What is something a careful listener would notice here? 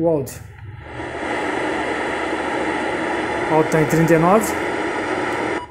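A car radio hisses with static.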